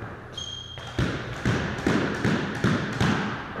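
A squash ball smacks hard against walls with an echo.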